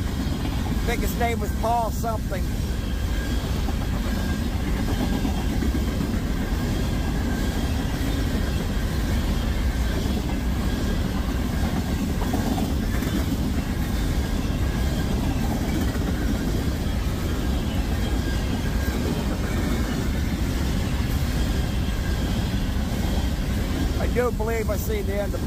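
A long freight train rumbles past close by with a steady roar.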